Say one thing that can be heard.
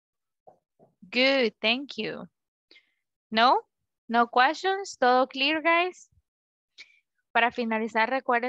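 A young woman speaks clearly through a microphone on an online call.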